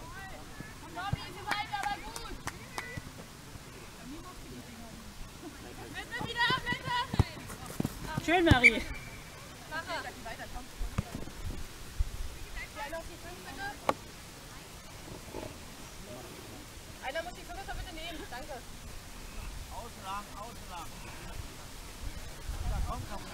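Young women call out to each other outdoors across an open field.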